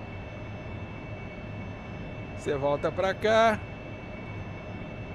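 A jet engine hums low and steady inside the cockpit.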